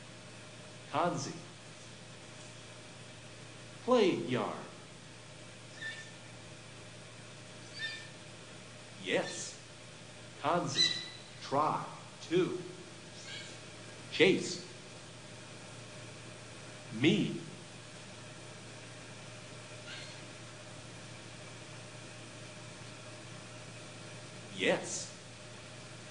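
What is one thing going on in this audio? A bonobo gives short, high squeaking calls now and then.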